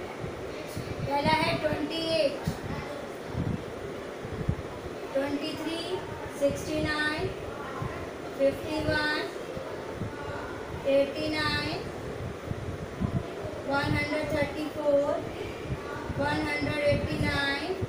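A woman speaks calmly and clearly, as if teaching.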